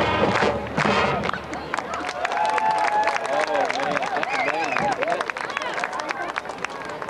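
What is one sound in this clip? A marching band plays brass and woodwinds outdoors.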